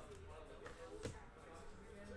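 A trading card slaps down onto a table.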